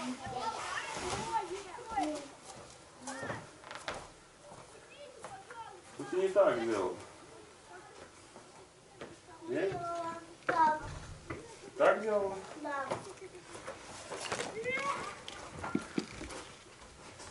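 A boy talks in short bursts.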